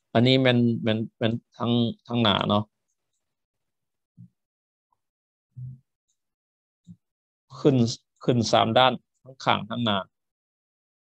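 A man talks calmly and closely into a microphone, pausing between phrases.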